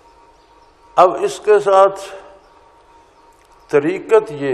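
An elderly man speaks calmly and slowly into a microphone.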